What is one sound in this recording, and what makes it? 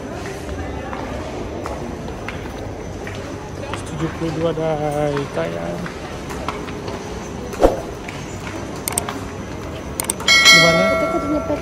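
Footsteps echo on hard stairs in a large indoor hall.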